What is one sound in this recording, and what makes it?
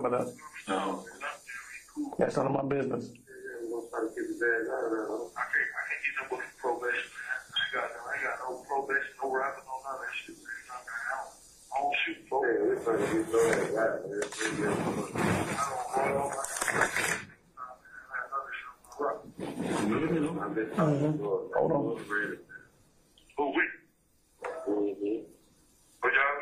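A man speaks calmly into a microphone, slightly muffled.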